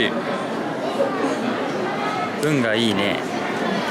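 A plastic wrapper crinkles in someone's fingers.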